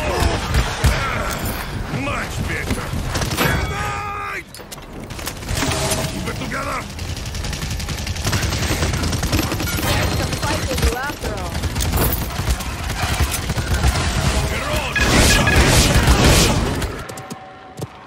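Explosions burst loudly.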